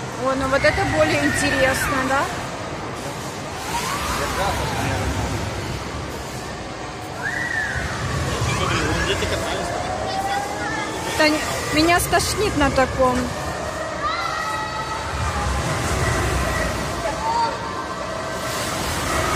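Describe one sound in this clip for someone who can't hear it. Amusement rides whir and rumble loudly in a large echoing hall.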